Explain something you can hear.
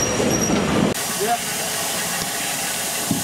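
A steam locomotive hisses steadily nearby.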